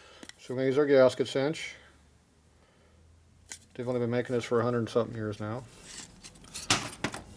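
A metal plate clanks down onto a metal part.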